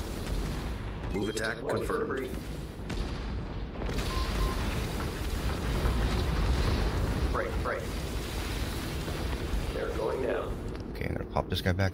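Explosions rumble and boom.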